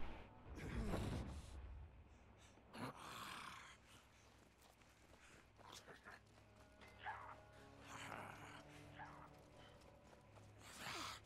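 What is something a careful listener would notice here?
Swords slash and clash in a fight.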